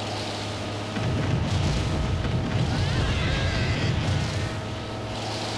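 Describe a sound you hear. A vehicle engine rumbles low and heavy.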